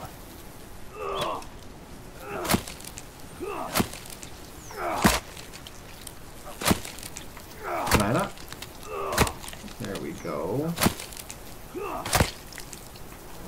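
Leafy plants rustle and snap as they are pulled from the ground.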